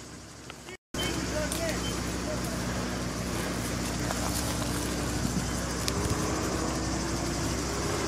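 A brush fire crackles and roars.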